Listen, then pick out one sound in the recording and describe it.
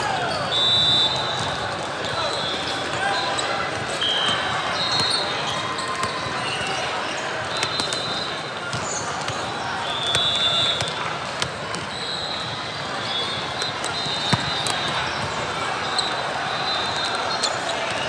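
A volleyball is struck with sharp thuds.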